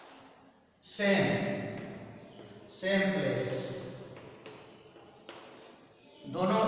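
An elderly man speaks loudly and slowly in an echoing room.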